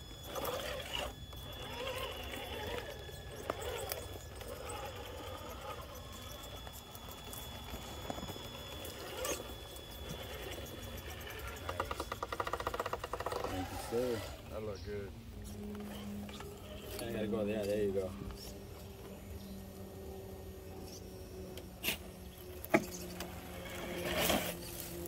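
Plastic tyres scrape and crunch on rock and gravel.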